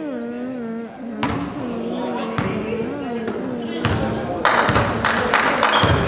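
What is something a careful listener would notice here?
A basketball bounces on a hard floor as a player dribbles.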